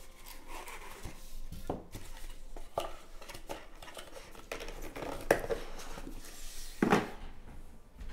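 Cardboard boxes rustle and scrape as hands handle them.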